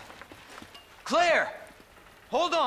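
A young man shouts back.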